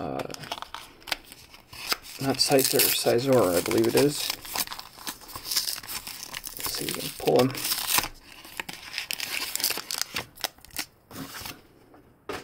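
A foil card wrapper crinkles and rustles between fingers.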